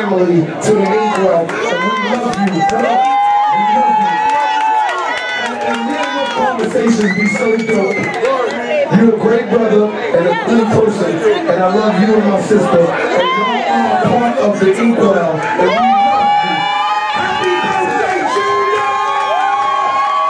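A woman shouts excitedly close by.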